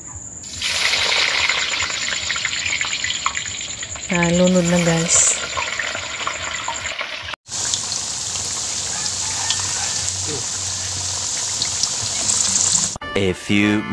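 Oil sizzles and bubbles loudly as potatoes fry.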